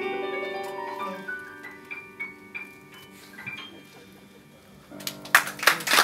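A piano plays a short run of notes.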